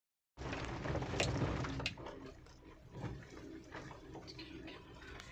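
A car engine hums low and steady inside the cabin.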